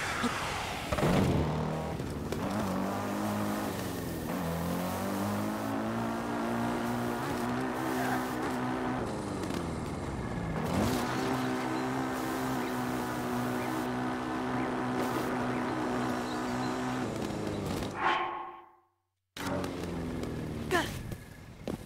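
A motorcycle engine drones steadily, its pitch rising and falling as it speeds up and slows down.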